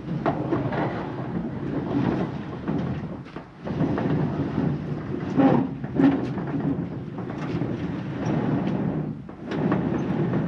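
Wooden boards clatter and knock.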